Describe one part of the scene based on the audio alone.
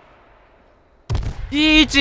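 A gunshot bangs.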